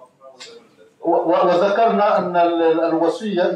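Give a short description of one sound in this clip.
A man speaks loudly with animation into a microphone.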